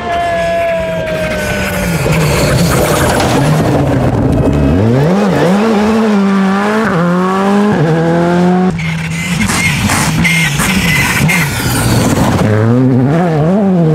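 A rally car engine revs hard, rising and falling as the car passes close by.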